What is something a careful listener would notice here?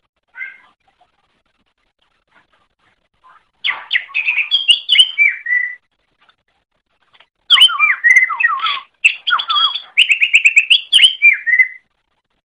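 A small songbird sings loud, rapid bursts of chirping, warbling song close by.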